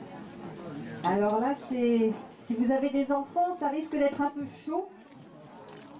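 A woman sings through a microphone.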